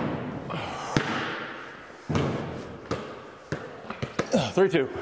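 A basketball bounces on a hard floor with a ringing echo.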